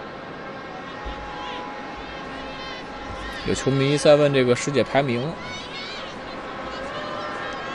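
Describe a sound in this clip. A large crowd murmurs and chants across an open stadium.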